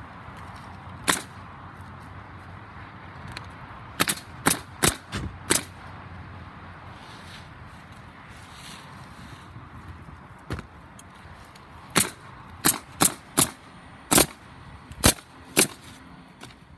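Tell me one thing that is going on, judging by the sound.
A pneumatic nail gun fires sharp bangs in quick bursts.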